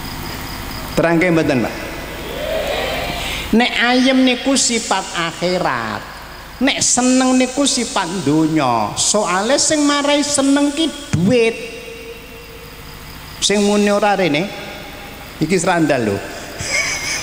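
An elderly man speaks with animation into a microphone, heard through loudspeakers in an echoing room.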